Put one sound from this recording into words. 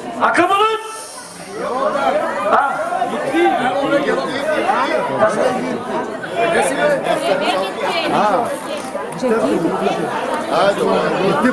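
A man talks loudly through a microphone over a loudspeaker.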